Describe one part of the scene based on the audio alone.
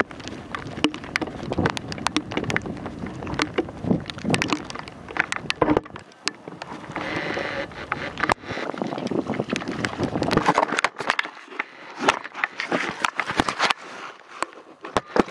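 Bicycle tyres roll and splash over a wet, muddy dirt path.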